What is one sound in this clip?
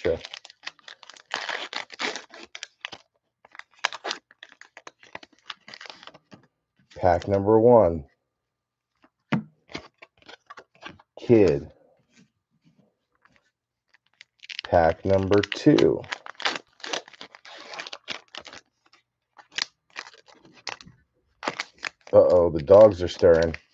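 A foil wrapper crinkles and tears open close by.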